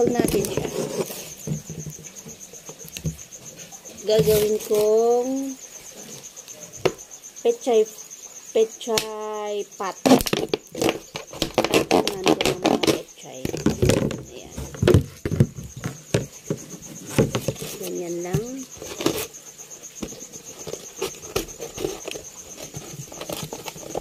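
A plastic bottle crinkles and crackles in a woman's hands.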